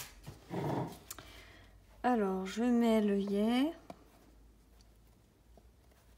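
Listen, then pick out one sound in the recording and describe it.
Card stock slides and rustles under a hand.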